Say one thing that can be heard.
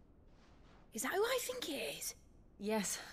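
A young man asks a question in a quiet voice.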